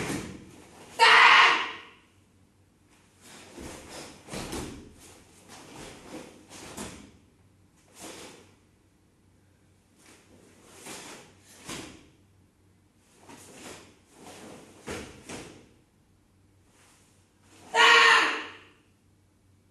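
A girl shouts sharply in short bursts.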